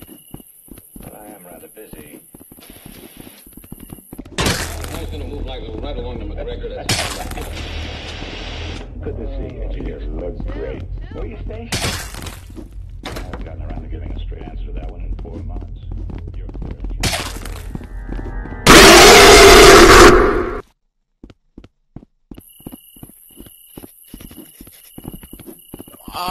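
Footsteps thud on hollow wooden boards.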